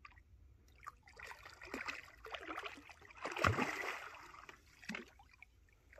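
A fish splashes at the surface of the water.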